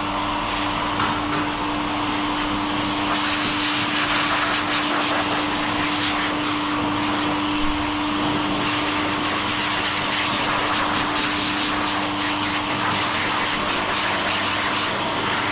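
A pet dryer blows air with a steady loud whoosh and whine.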